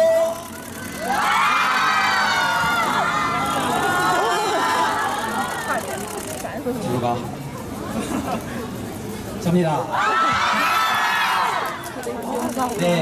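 A crowd of young women screams and cheers loudly.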